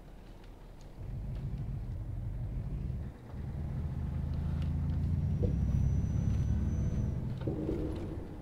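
A truck engine rumbles and revs.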